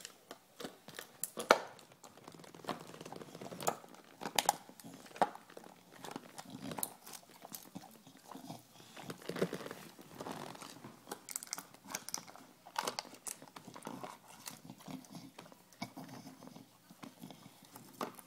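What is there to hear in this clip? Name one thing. A dog chews and gnaws on a plastic bottle, with crackling clicks.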